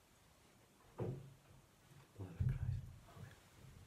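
A man sets a metal cup down on a table with a soft knock.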